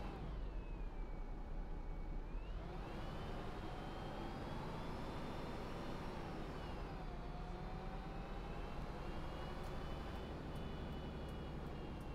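A bus engine hums and whines, rising and falling in pitch as the bus speeds up and slows.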